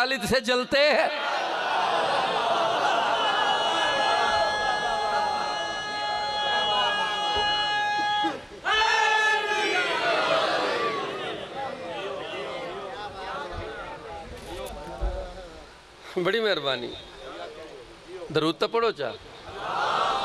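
A large crowd of men chants together.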